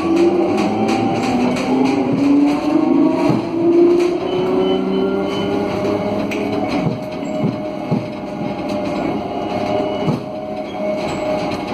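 A tram rumbles and rattles along its rails.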